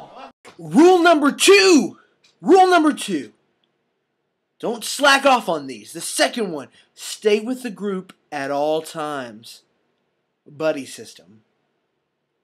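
A young man speaks loudly and with animation close to a microphone.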